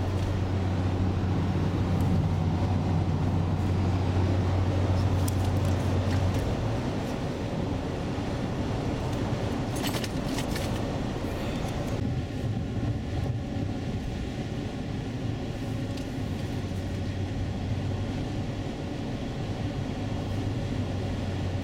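A car engine hums steadily while driving on a highway.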